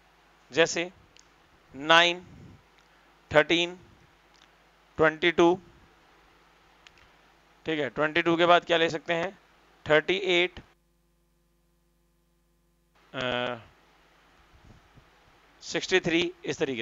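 A young man speaks close to a clip-on microphone, explaining in short bursts.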